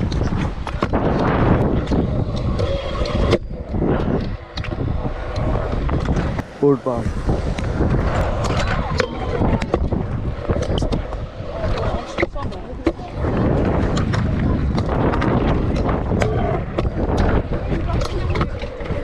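Scooter wheels clack over joints and bumps in the concrete.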